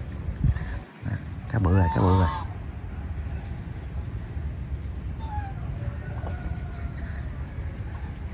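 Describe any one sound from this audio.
A small fish splashes and flaps at the water's surface.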